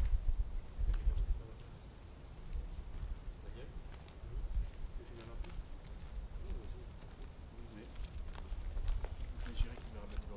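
Young men talk quietly a short way off.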